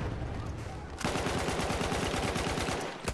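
A machine gun fires a rapid burst at close range.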